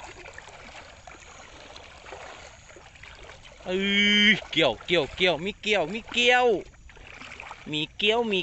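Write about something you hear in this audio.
Rubber boots splash and slosh through shallow water.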